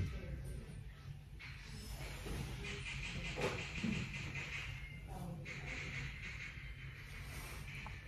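A young woman gently rubs tape on her face.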